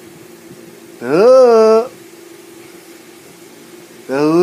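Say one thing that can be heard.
A man lets out long, drawn-out vocal sounds close to the microphone.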